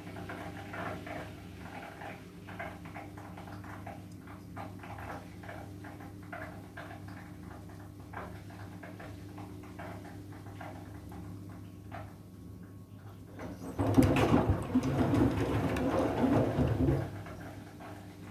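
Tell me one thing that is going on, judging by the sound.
A washing machine drum turns with a low steady hum.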